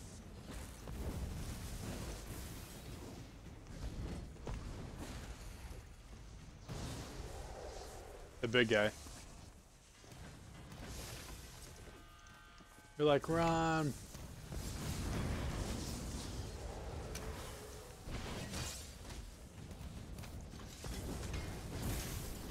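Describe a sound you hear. Fire spells whoosh and crackle in bursts.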